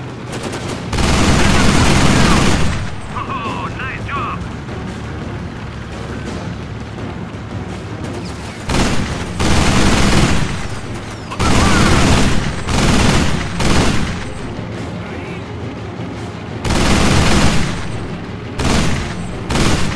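A heavy machine gun fires loud bursts.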